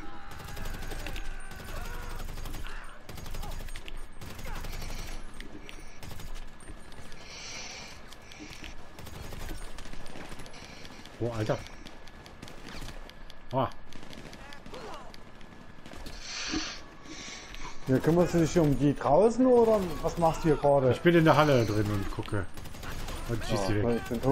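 Rifle shots fire in rapid bursts.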